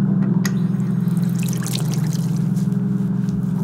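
Water pours from a tap into a basin.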